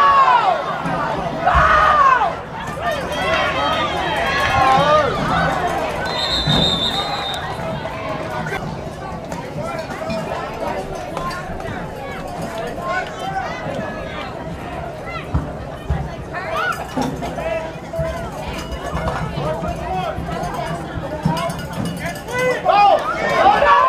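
Spectators cheer and shout from the sidelines outdoors.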